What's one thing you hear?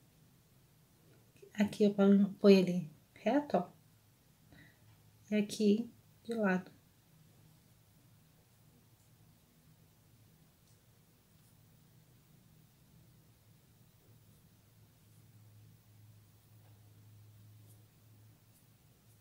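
A paintbrush softly brushes across canvas.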